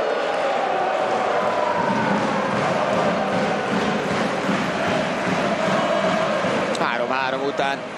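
A large indoor crowd cheers and chants loudly, echoing through a big hall.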